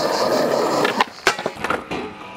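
A skateboard snaps sharply off the ground.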